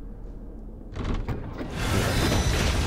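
A heavy wooden door rattles and swings open.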